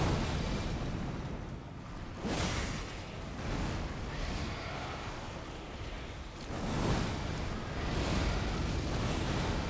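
Heavy game combat effects boom and crash.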